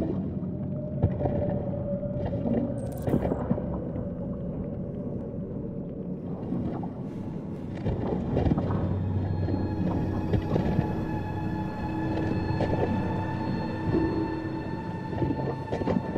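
Something crawls and splashes through shallow water.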